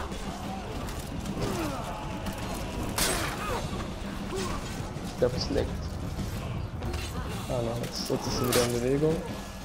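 Swords clash and ring in a battle.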